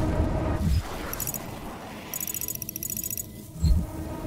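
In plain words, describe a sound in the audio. Electronic menu beeps chirp rapidly.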